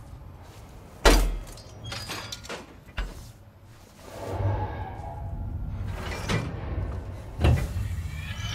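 Metal clamps clank and scrape as they are pried loose.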